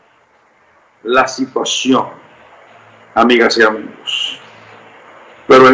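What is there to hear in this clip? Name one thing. A middle-aged man speaks forcefully through a microphone over an online call.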